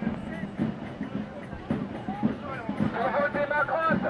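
A man shouts through a megaphone.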